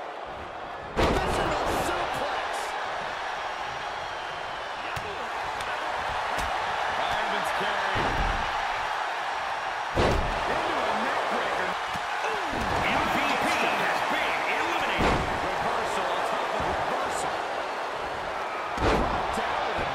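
Wrestlers thud heavily onto a wrestling ring mat.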